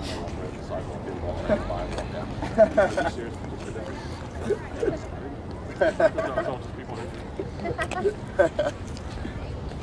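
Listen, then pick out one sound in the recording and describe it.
Young women talk and call out together in a team huddle at a distance, outdoors.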